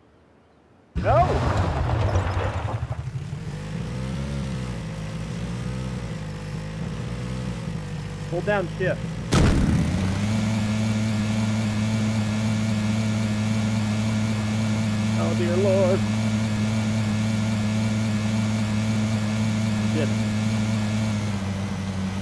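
A buggy engine roars as it revs and speeds up, then drones steadily.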